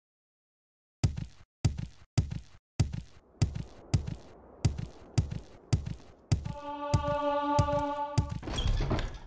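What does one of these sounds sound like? Footsteps thud on stone at a steady walking pace.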